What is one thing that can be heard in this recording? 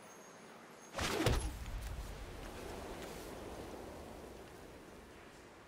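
A card game plays a sharp whooshing impact effect that rings out and fades.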